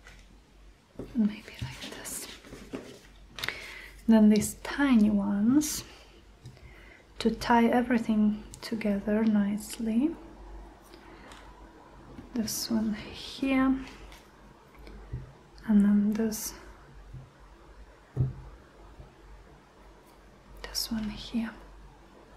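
Paper rustles as hands press it flat.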